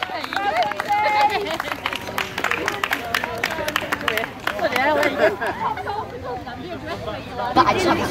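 A crowd of spectators cheers and calls out outdoors.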